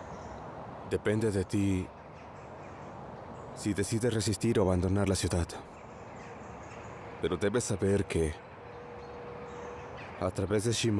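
A man speaks quietly and seriously.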